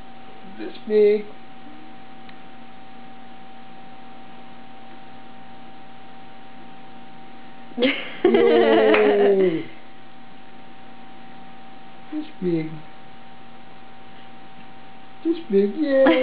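A baby squeals and babbles loudly up close.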